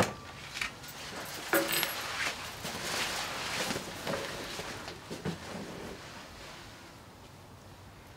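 Fingers brush softly through short hair.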